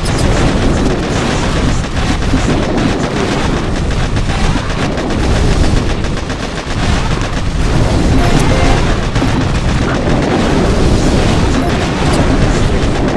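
Game explosions and gunfire rumble on without a break.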